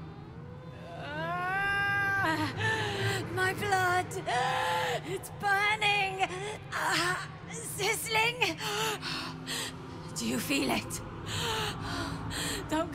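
A young woman speaks in a strained, pained voice, close to the microphone.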